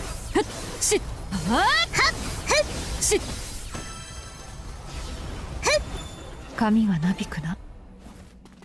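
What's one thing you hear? Sword blows clash and whoosh in quick bursts.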